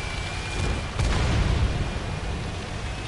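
A tank cannon fires with a deep boom.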